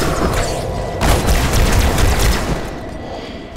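A blast booms and crackles.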